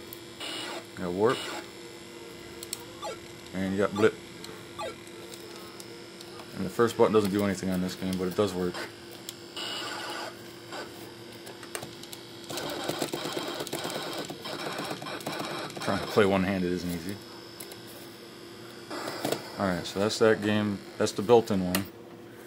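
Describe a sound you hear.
A video game plays electronic tones and zaps.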